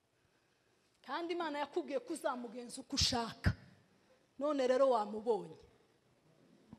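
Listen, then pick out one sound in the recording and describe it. A woman speaks with animation into a microphone close by.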